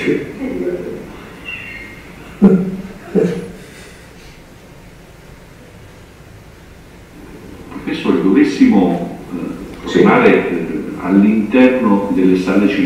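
A man speaks calmly through a loudspeaker.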